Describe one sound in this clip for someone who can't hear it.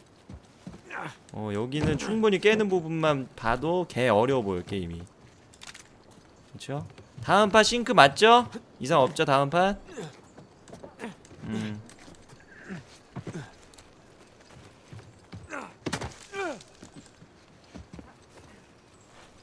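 Footsteps patter on wooden boards and grass.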